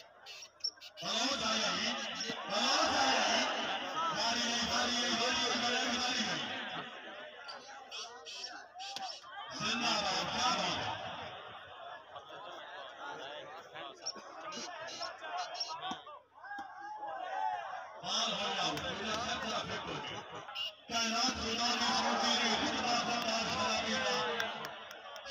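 A large crowd cheers and shouts loudly outdoors.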